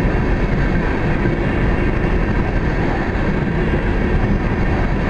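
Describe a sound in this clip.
Train wheels clatter steadily on the rails.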